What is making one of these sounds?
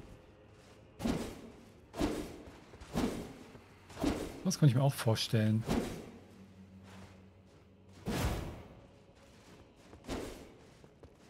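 A warrior in armour rolls across a stone floor with heavy whooshing thuds.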